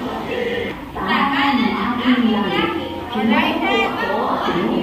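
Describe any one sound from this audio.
Young children chatter and sing along.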